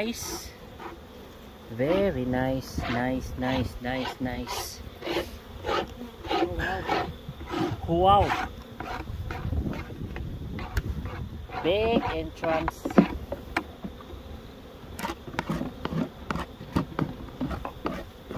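Bees buzz in a swarm close by.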